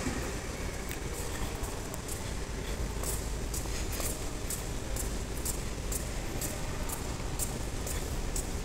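Footsteps tap steadily on a hard floor in a large echoing hall.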